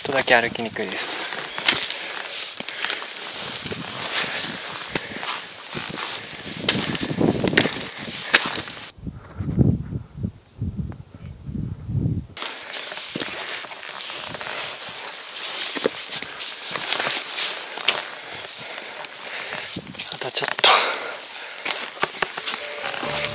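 Wind rushes and buffets close by outdoors.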